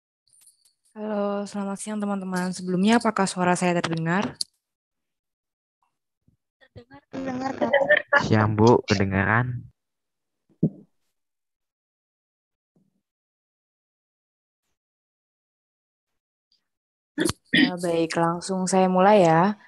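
Young women talk by turns over an online call.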